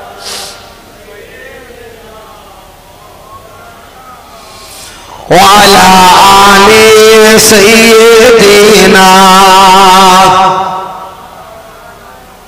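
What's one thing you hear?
A man sings loudly and with feeling into a microphone, heard through loudspeakers.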